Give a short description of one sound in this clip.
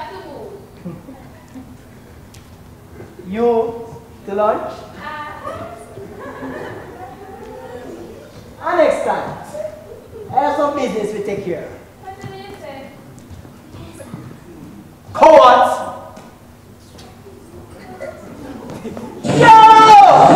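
A young woman speaks with animation across a large hall.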